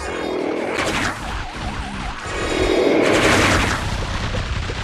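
Cartoon explosions boom over and over.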